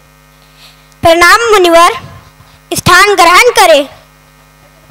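A woman sings loudly through a microphone in a large hall.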